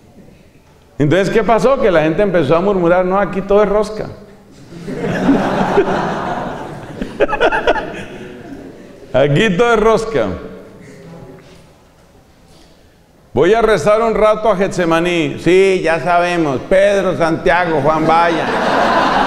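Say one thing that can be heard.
A middle-aged man talks calmly into a microphone, close by.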